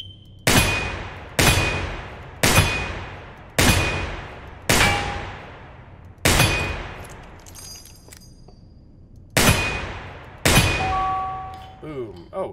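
Metal targets ring with a short ping when hit.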